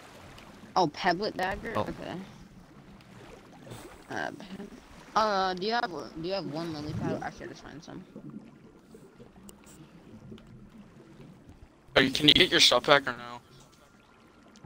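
Water swishes softly as a swimmer strokes underwater.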